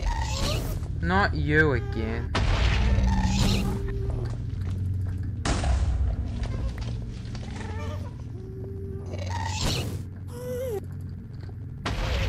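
A ghostly creature wails and shrieks in high, eerie cries.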